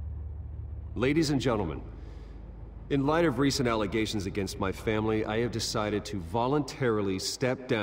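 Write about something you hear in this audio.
A man speaks calmly into microphones.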